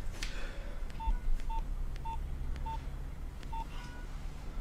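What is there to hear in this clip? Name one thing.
A mobile phone's keys beep as a number is dialled.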